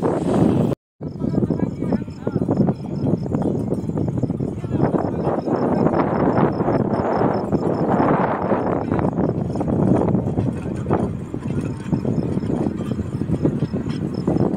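A small rail trolley rattles along the track as it approaches.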